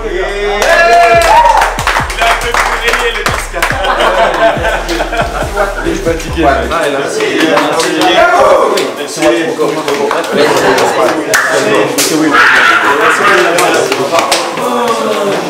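Men clap their hands.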